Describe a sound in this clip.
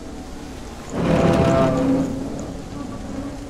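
A heavy wooden door creaks as it swings open.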